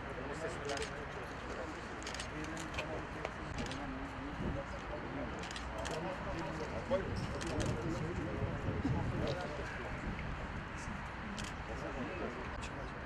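A crowd of young men murmurs and chatters nearby.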